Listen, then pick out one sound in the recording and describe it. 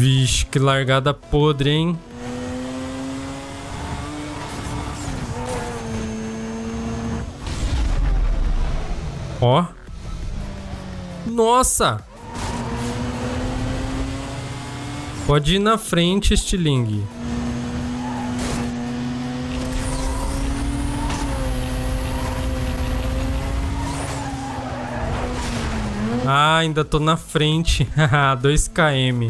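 A race car engine roars at high speed, rising and dropping in pitch with gear changes.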